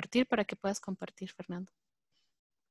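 A woman speaks calmly through a headset microphone over an online call.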